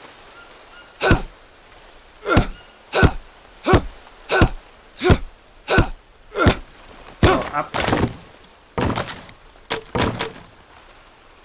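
Leafy plants rustle and swish in short, quick bursts.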